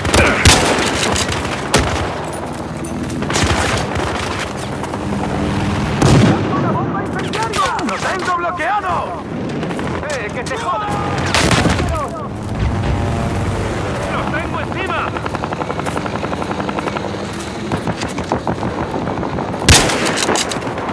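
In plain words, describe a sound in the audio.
Gunshots crack loudly now and then, outdoors.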